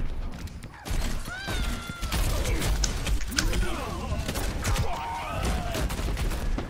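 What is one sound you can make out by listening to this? Explosions boom and crackle close by.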